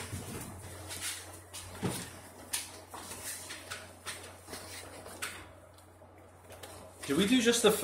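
Clicks and knocks sound as an accordion is handled close by.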